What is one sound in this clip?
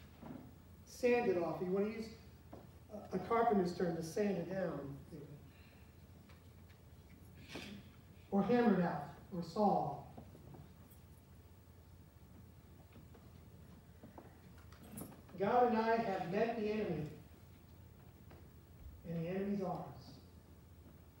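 A middle-aged man speaks calmly with pauses in a room with a slight echo.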